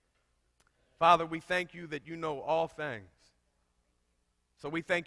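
A man preaches loudly through a microphone in an echoing hall.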